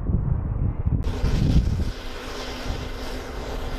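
A hovercraft's engines hum and hiss steadily nearby.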